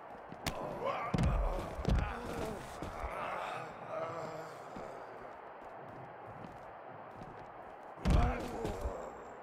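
A body slams hard onto the floor with a heavy thud.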